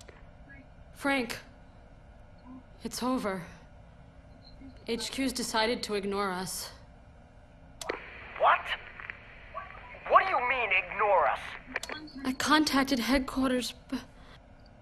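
A young woman talks anxiously into a phone, close by.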